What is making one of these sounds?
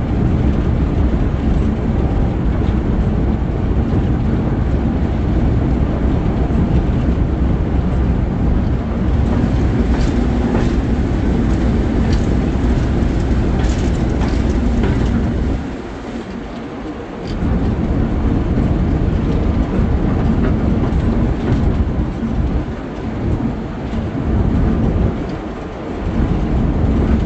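A diesel locomotive engine rumbles loudly close by.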